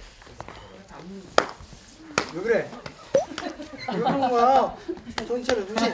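Young men talk and laugh casually nearby.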